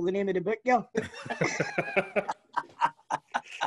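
Several men laugh loudly over an online call.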